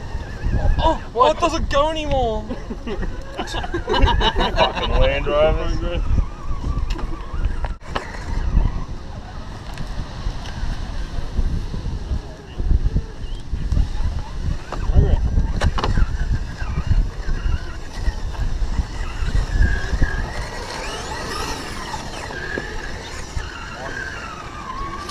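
A small electric motor whines as a toy truck crawls over rock.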